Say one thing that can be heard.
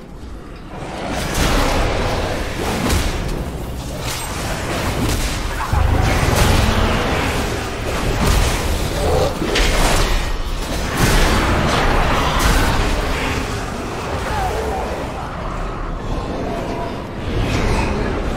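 Game spell effects and combat sounds crackle and boom.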